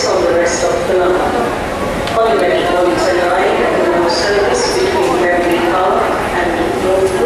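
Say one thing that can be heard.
A middle-aged woman sings loudly and with energy close by.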